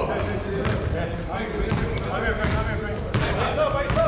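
A basketball bounces with hollow thuds as a player dribbles.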